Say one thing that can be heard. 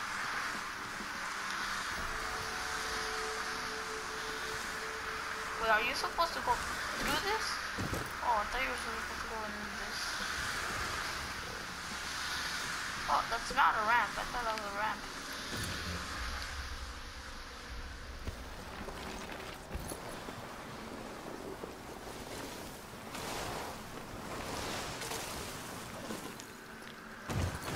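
A snowboard hisses and scrapes steadily over snow.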